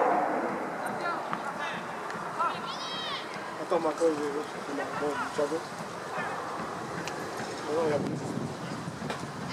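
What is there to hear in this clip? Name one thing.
Teenage boys shout across a pitch, far off outdoors.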